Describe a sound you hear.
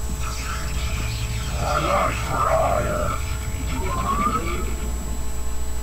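A game structure warps in with a shimmering hum.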